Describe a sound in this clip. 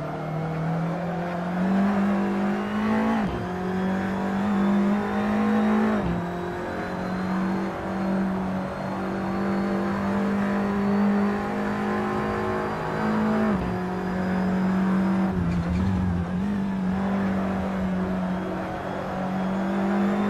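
A race car engine revs high and drops sharply with each gear shift.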